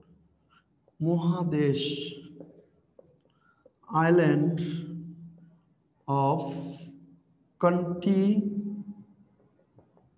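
A young man speaks slowly in short, drawn-out phrases with pauses between them.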